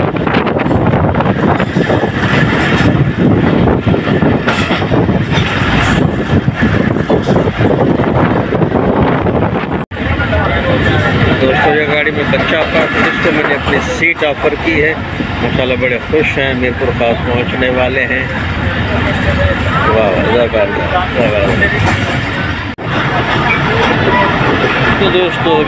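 A train rumbles and rattles loudly along the tracks.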